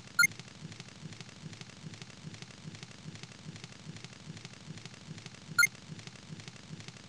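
A small campfire crackles softly.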